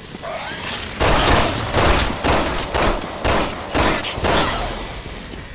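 A handgun fires several loud shots in quick succession.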